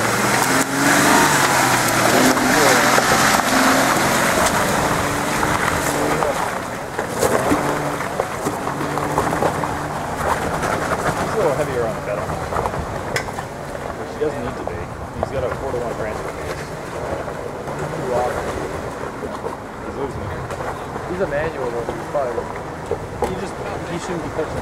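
An off-road vehicle's engine rumbles close by, then fades as the vehicle climbs away.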